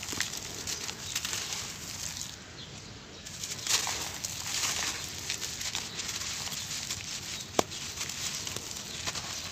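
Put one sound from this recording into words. Dry sand trickles and pours down.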